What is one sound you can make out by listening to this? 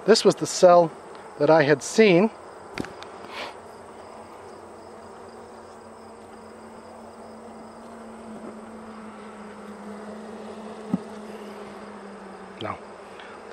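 Bees buzz softly.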